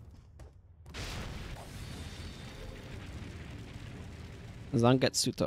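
A loud magical blast roars and crackles.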